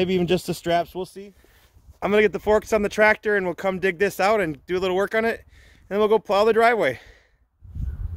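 A man speaks calmly and closely to a microphone outdoors.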